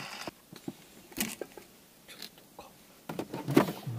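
A metal gas canister knocks down onto a table.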